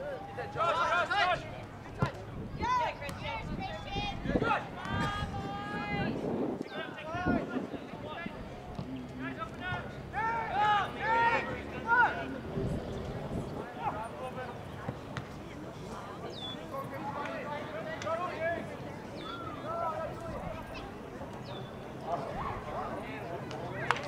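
Young men shout and call to each other outdoors.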